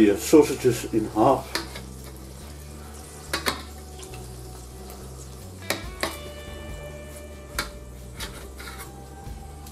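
Tongs and a knife clink against a metal platter.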